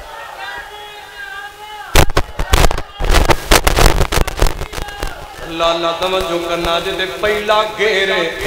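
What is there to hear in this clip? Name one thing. A man sings a melodic chant through a microphone.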